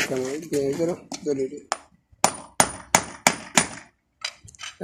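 A hammer taps nails into a horseshoe on a hoof.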